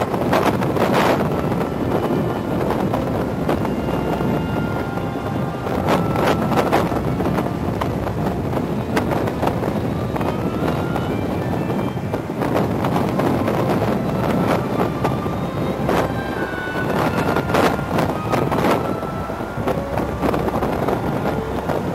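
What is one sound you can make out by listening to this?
Strong wind buffets the microphone of a rider in motion.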